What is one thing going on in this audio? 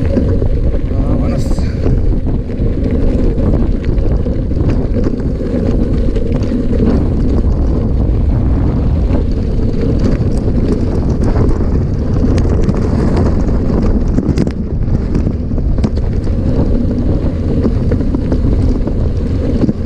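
Bicycle tyres crunch and rattle over a rough gravel track.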